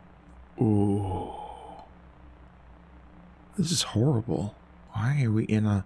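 A young man exclaims and talks with animation, close to a microphone.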